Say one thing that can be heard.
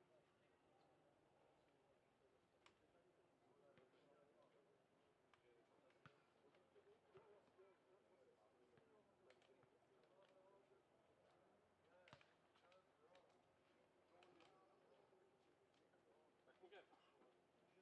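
Several people chat and call out at a distance outdoors.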